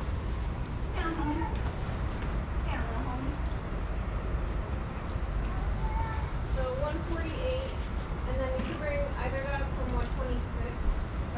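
Dogs whine and yelp nearby.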